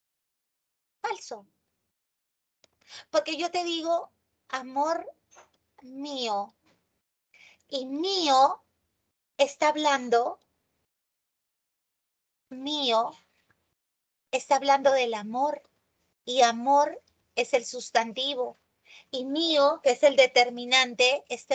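A woman explains calmly, heard through an online call microphone.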